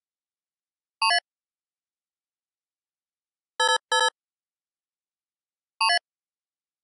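Short electronic beeps chime from a game.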